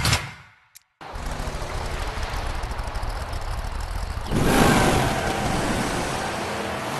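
A truck engine rumbles and revs up as the vehicle accelerates.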